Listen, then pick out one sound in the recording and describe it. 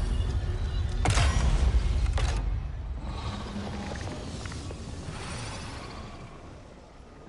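An energy beam hums and roars loudly, then fades.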